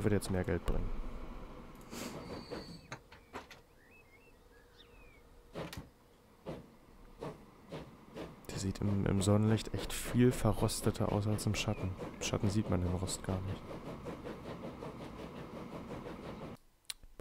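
A steam locomotive chugs along with rhythmic puffs.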